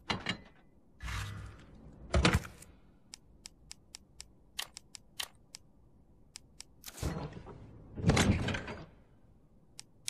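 A soft whoosh sounds as a menu opens and closes.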